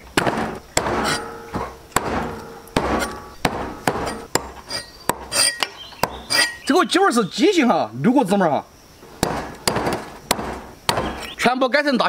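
A cleaver chops sharply through meat and bone on a wooden board.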